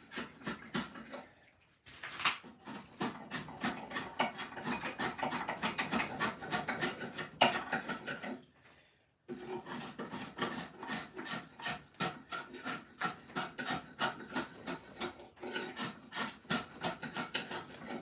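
A blade shaves and scrapes along a piece of wood in quick, repeated strokes.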